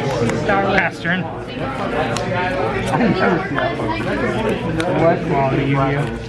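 Playing cards riffle as they are shuffled in hand.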